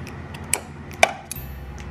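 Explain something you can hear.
A sewing machine hums as it stitches.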